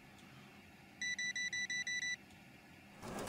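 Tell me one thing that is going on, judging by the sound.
A checkout scanner beeps rapidly.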